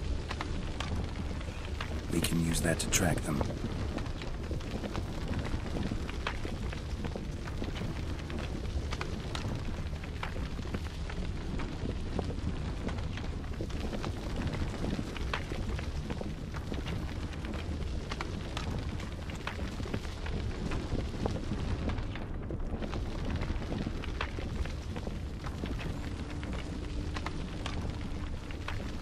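Footsteps rustle through grass and crunch on a dirt path.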